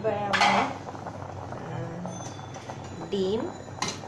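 Water bubbles at a boil in a pot.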